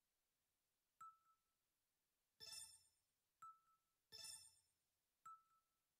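Soft short beeps sound at each click.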